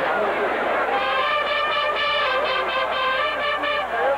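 A marching band plays brass horns loudly.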